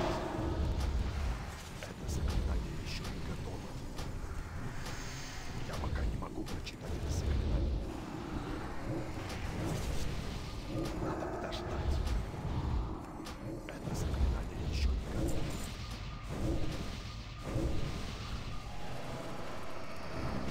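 Game spells and blasts crackle and boom in a fast-paced fight.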